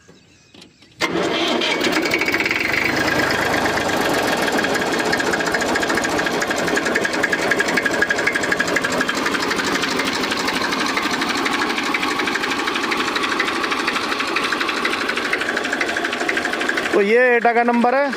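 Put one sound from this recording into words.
A tractor's diesel engine idles with a steady, rapid chugging nearby.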